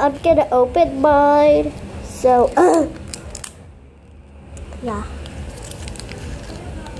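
A plastic wrapper crinkles in someone's hands.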